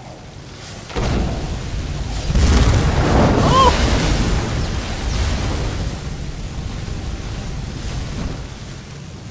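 A fiery blast roars and crackles loudly.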